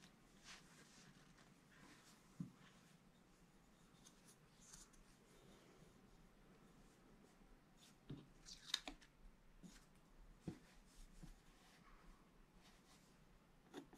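A wooden stick taps and scratches on card.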